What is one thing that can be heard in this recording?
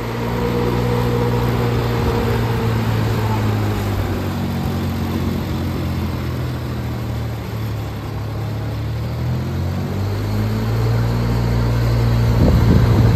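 A fan blower hisses as it sprays a mist.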